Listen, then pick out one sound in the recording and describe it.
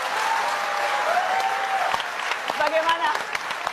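An audience laughs and cheers in a large hall.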